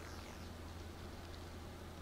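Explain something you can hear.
A laser sword hums with a low electric buzz.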